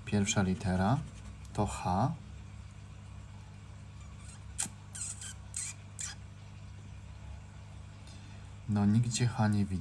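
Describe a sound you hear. A pen scratches lightly across a paper card.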